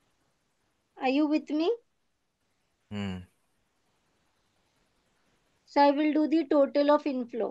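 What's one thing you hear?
A woman speaks calmly over an online call, explaining.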